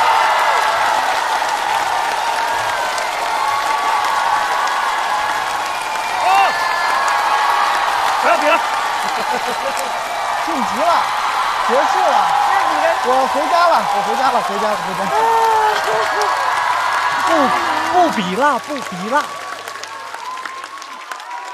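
A large audience cheers and applauds in an echoing hall.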